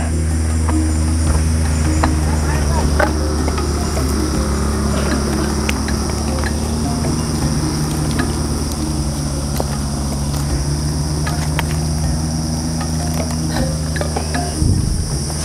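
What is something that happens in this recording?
A tool scrapes and knocks against wood and soil.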